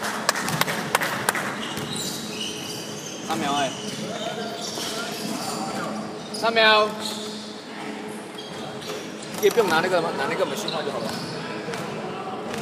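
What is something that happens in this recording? Sneakers squeak on a hardwood basketball court in a large echoing gym.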